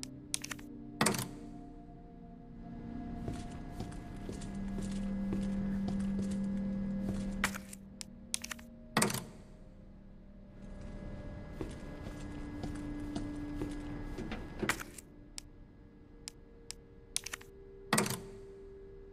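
A metal plug clicks sharply into a socket.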